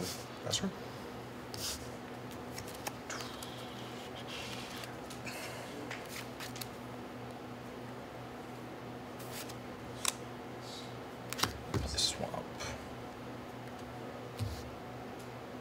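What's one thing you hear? Playing cards slide and tap on a table mat.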